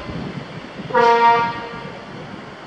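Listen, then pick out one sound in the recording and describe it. A tractor horn blasts loudly once.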